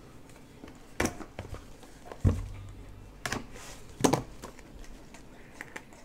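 A plastic wrapper crinkles and tears.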